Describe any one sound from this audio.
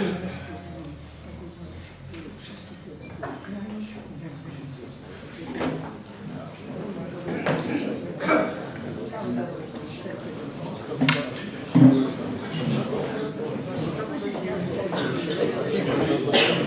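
A second elderly man answers in a low voice.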